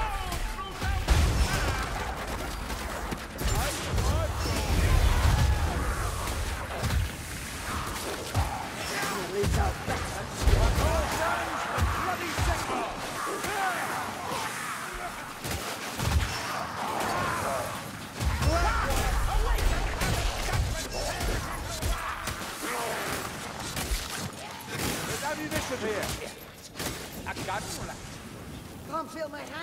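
Creatures screech and snarl.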